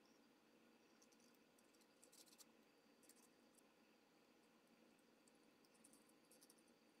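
Metal parts click and scrape against each other as they are fitted together by hand.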